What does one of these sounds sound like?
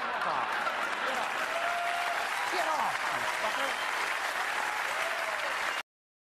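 A large audience applauds in a big hall.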